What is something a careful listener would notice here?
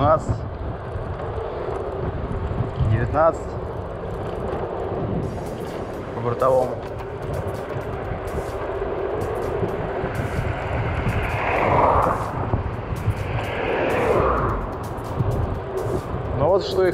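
Wind rushes and buffets against the microphone while riding outdoors.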